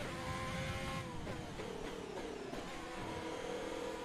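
A racing car engine drops sharply in pitch as the car brakes through downshifts.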